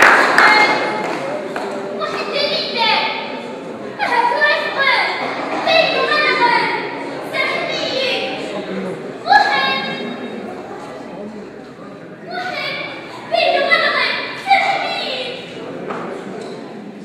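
A young woman sings with feeling in an echoing hall.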